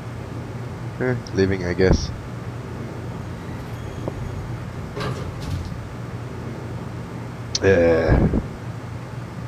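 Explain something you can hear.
A young woman speaks briefly and casually into a close headset microphone.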